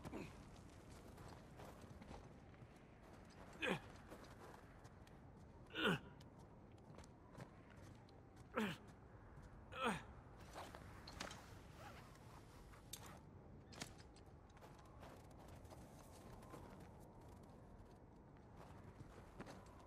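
Footsteps crunch on snow and rock.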